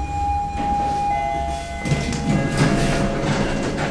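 Elevator doors slide open with a low rumble.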